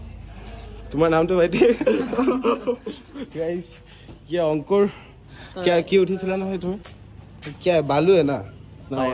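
Young men talk and laugh close by, with animation.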